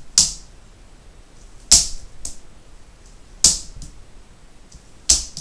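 A toddler's shoes squeak sharply with each step on a wooden floor.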